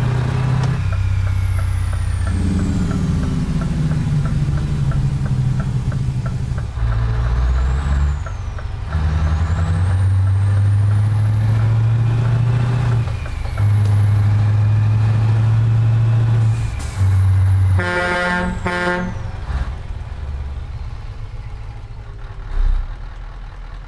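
A truck engine drones and changes pitch as it shifts gears.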